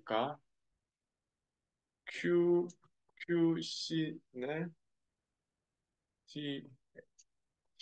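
A young man speaks calmly into a close microphone, in short phrases with pauses.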